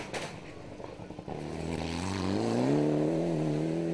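Gravel sprays and rattles under a car's tyres.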